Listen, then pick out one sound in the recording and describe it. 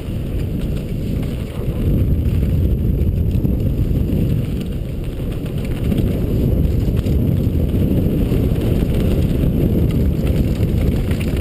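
Wind roars past loudly.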